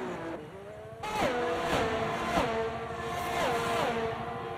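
Racing car engines roar and shift gears as a pack accelerates.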